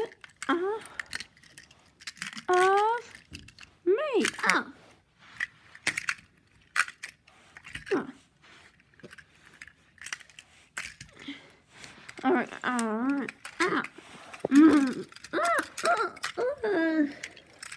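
Small plastic toy cars click and clack against each other.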